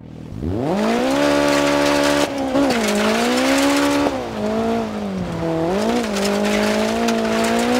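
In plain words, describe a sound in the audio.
A rally car engine revs up hard and roars as it accelerates.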